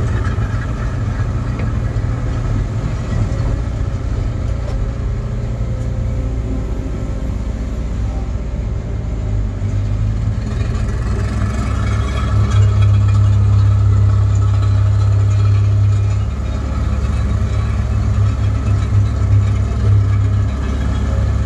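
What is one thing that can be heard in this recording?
A diesel engine rumbles steadily from inside the cab, growing louder as it works harder.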